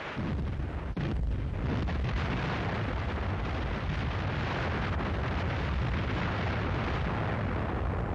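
Explosions boom and rumble in a rapid series.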